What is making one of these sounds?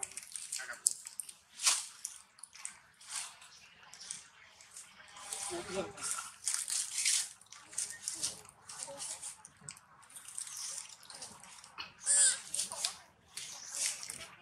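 A monkey chews noisily on paper.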